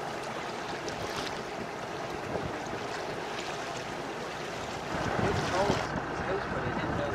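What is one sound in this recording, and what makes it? Wind rushes over the water.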